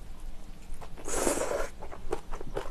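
A young woman slurps noodles close to a microphone.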